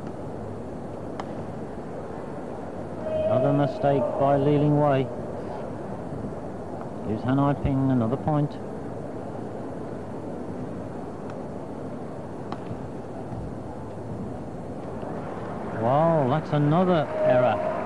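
A shuttlecock is struck with a racket with sharp pops, in a large echoing hall.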